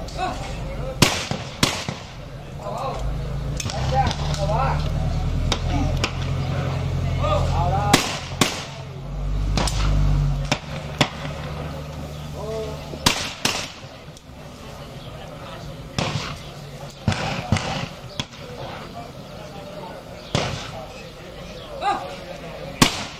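Shotguns fire loud sharp shots outdoors, one after another.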